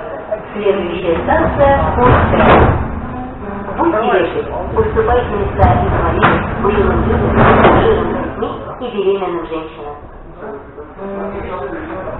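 A subway train rumbles and rattles as it moves off.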